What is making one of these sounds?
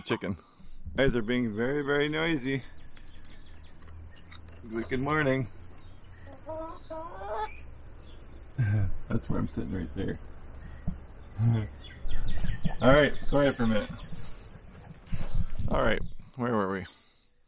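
Hens cluck nearby.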